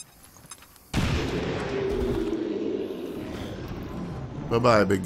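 A grenade explodes with a loud boom and a rumbling tail.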